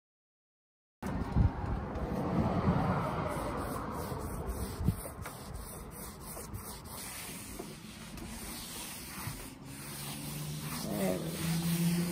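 A cloth rubs briskly over a surface.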